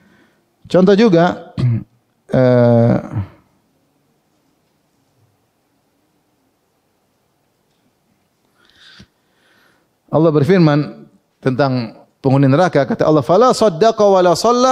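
A man speaks calmly into a microphone, pausing now and then.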